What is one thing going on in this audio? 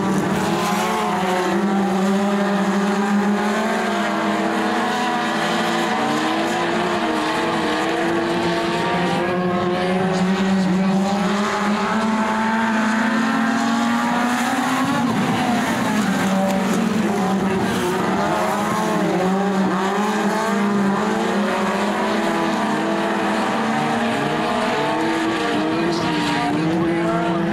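Several race car engines roar and rev loudly close by.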